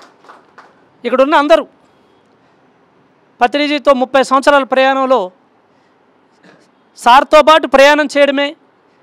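A middle-aged man speaks calmly and closely into a microphone, in short bursts with pauses.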